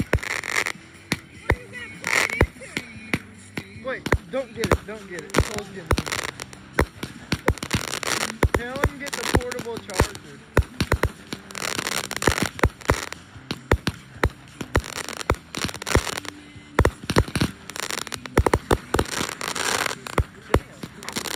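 Fireworks burst overhead with rapid loud bangs and cracks.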